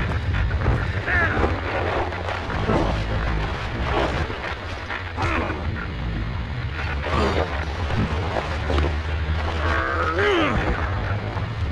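Monsters shriek and screech.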